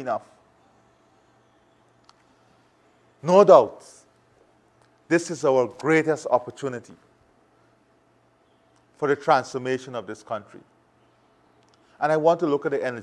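A man speaks calmly and deliberately into a close microphone, with pauses.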